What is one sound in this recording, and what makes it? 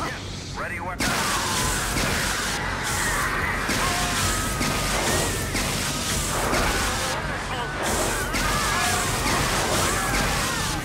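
Energy blades hum and clash.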